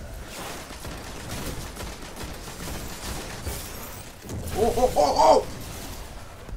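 Electric crackling and zapping bursts out loudly.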